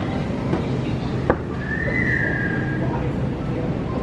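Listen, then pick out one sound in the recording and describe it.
A shopping cart rolls and rattles over a hard floor.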